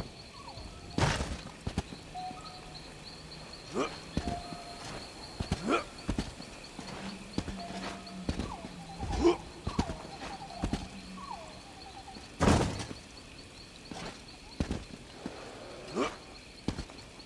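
A bow twangs sharply as arrows are loosed.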